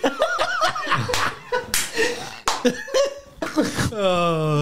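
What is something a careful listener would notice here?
A young man laughs loudly into a close microphone.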